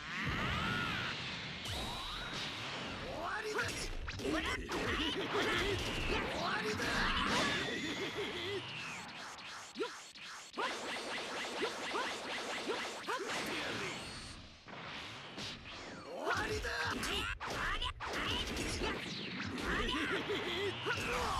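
Energy blasts roar and explode.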